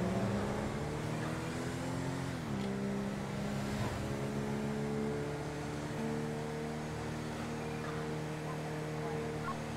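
A car engine hums steadily as the car cruises down a road, its pitch dropping briefly as it shifts gear.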